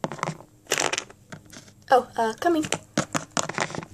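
A plastic toy figure knocks against a tabletop.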